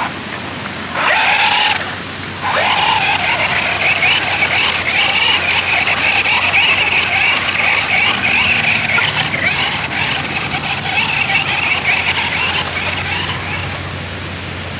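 A small electric motor whines loudly as a toy car races across sand.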